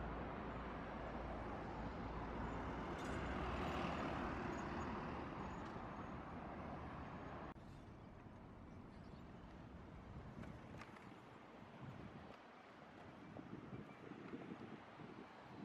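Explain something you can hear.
City traffic hums steadily in the distance.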